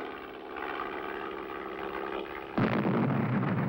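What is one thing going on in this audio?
A man speaks into a field telephone, heard close.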